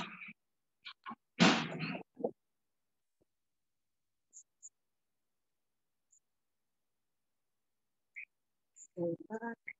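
Paper rustles softly as hands fold it.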